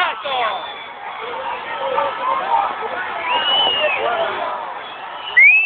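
A large stadium crowd whistles and jeers loudly.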